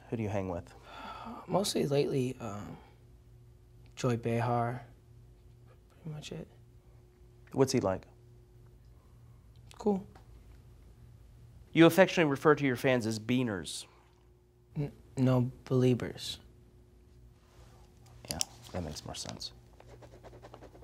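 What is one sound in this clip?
A young man answers in short, hesitant phrases.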